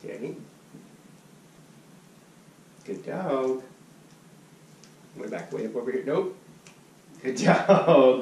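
A man speaks commands to a dog in short bursts, close by.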